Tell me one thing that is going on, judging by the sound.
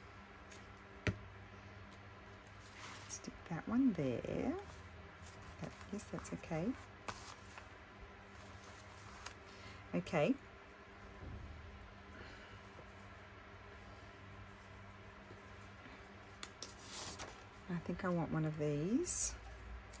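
Paper rustles and crinkles.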